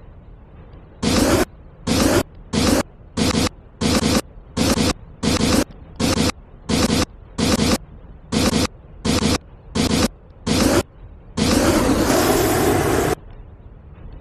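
Jet thrusters roar in short, repeated bursts, then in one longer blast.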